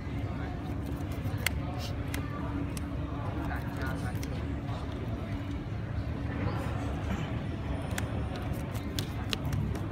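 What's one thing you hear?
Cards are shuffled in hands with soft flicking.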